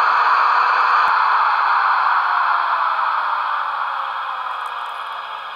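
A motor whines and drops in pitch as it passes close by.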